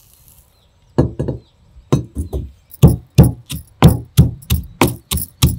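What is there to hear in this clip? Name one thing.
A stone pestle pounds in a stone mortar with steady thuds.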